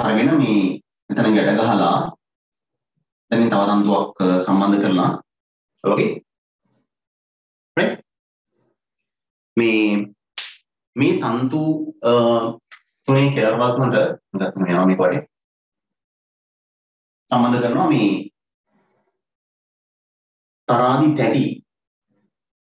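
A man speaks calmly through a microphone, pausing often.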